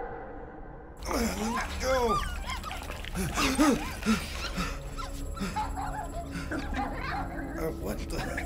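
A dog pants and snuffles close by.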